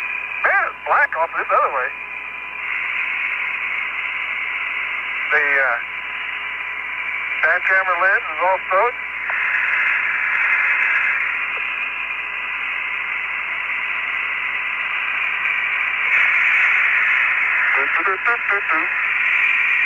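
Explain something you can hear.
A man speaks in short bursts over a crackling radio.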